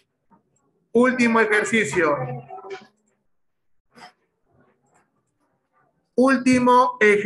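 A man talks calmly through an online call.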